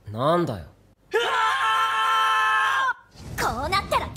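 Two young men shout together.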